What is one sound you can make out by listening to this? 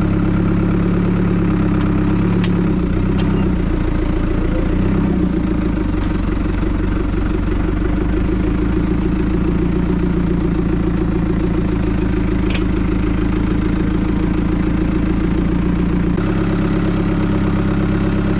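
A tractor engine drones steadily nearby.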